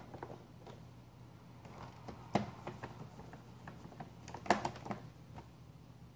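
A screwdriver scrapes and taps against plastic.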